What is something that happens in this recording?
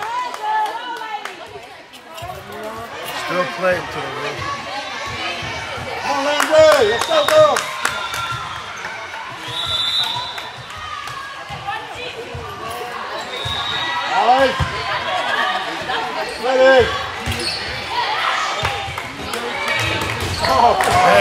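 Young women shout and cheer across a large echoing gym.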